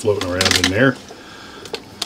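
A plastic bottle is set down inside a cooler.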